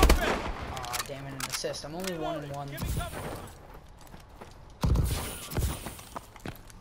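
Gunfire bursts loudly in short volleys.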